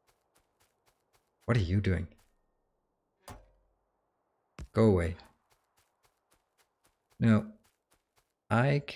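Footsteps tap softly and steadily.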